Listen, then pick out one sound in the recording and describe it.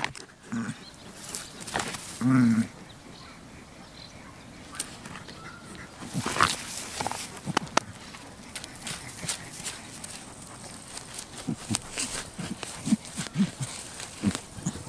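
Goat hooves scuff on dry dirt.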